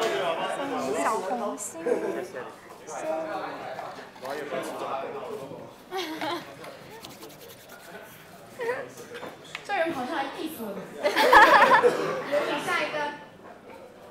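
Young women chat and laugh together close by.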